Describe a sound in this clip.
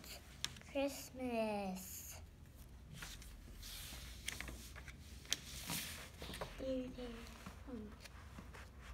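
A young girl speaks close by in a high voice.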